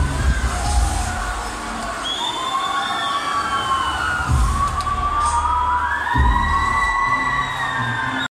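Loud electronic music with deep bass and gliding synth tones plays through large outdoor loudspeakers.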